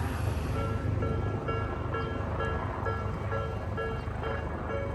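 A railway crossing bell rings steadily and repeatedly.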